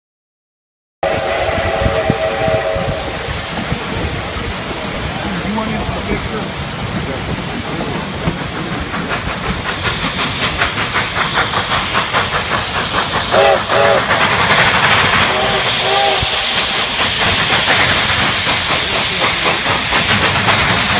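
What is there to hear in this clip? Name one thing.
A steam locomotive chuffs in a fast, steady rhythm that grows louder.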